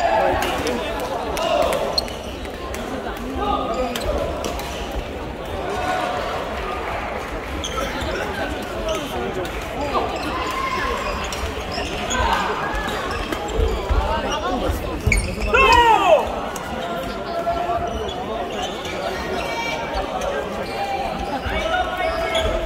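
Shuttlecocks are struck with badminton rackets, with sharp pops.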